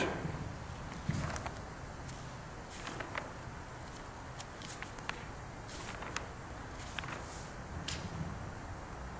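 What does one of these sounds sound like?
Pages and papers rustle and click close to a microphone.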